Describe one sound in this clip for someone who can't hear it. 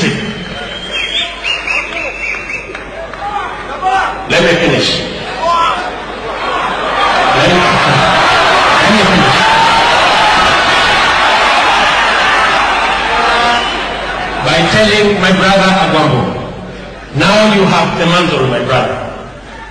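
A man speaks loudly and with animation into a microphone, heard through loudspeakers in a large space.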